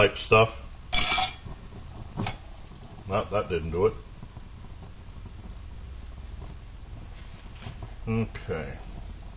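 Metal parts of a small stove clink as they are handled.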